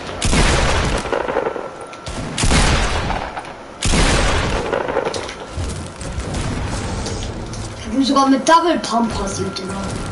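Loud gunshots and blasts boom in bursts.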